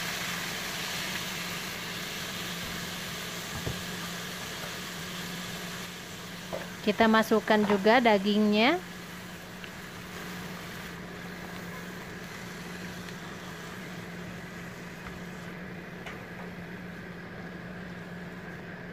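A wooden spatula stirs and scrapes food in a pan.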